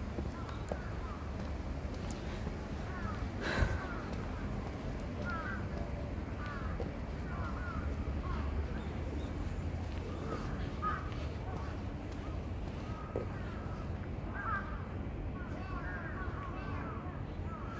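Footsteps tread along a paved path.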